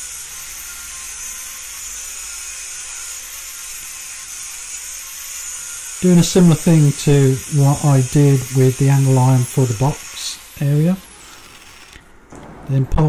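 An angle grinder whines steadily as its disc cuts into metal.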